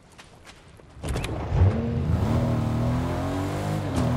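A car engine hums and revs up as the car drives off.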